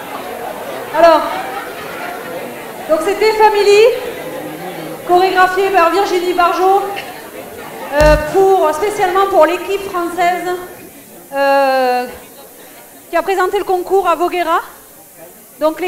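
A woman speaks with animation through a microphone and loudspeakers in a large echoing hall.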